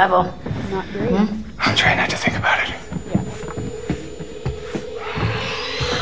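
A man and a young woman talk quietly.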